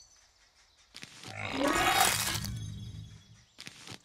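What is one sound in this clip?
An icy burst whooshes and crackles.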